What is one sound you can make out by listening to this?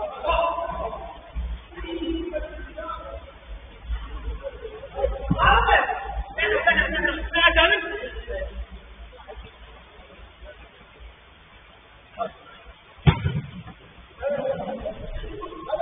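Young men shout and call to each other across an echoing indoor pitch.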